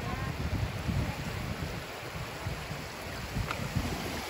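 Shallow water laps gently over pebbles.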